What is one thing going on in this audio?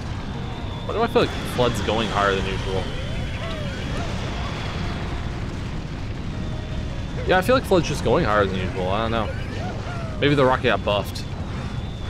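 A large monster roars and growls.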